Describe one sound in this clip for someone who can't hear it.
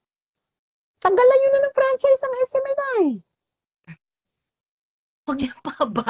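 A young woman talks over an online call.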